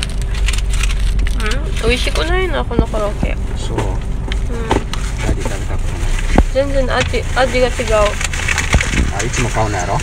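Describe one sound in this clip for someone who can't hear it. A paper bag crinkles close by.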